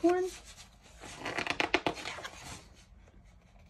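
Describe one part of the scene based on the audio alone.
Pages of a book rustle as they are turned.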